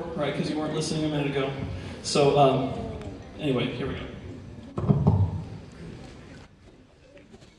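A man speaks into a microphone with animation, heard over loudspeakers in a large echoing hall.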